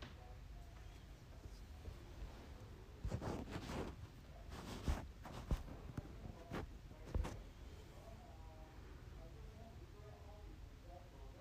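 A pencil scratches and shades on paper.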